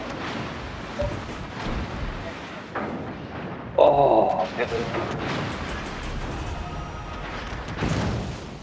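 Shells splash into the sea with heavy booms.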